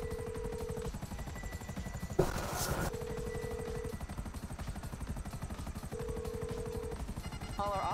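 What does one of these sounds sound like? A phone call's ringing tone beeps in repeated bursts.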